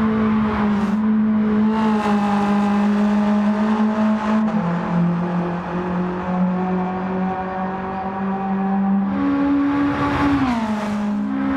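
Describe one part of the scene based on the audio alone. A racing car engine drones steadily, its pitch dropping and rising with gear changes.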